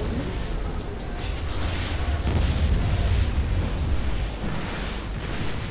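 Spaceships fire laser weapons in rapid bursts.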